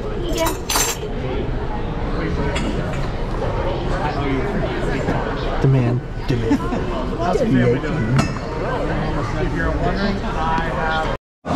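A man speaks calmly over loudspeakers in a large room.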